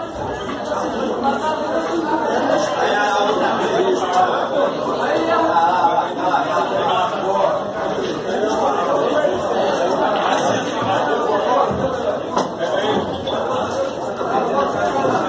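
A crowd of men chatter and talk loudly nearby.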